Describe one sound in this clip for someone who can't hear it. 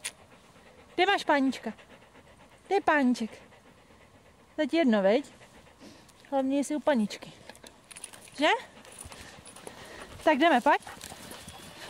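A dog lets out loud, high whining cries in short bursts, close by.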